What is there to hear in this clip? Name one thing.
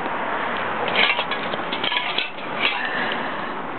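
Spray cans clink together in a bag.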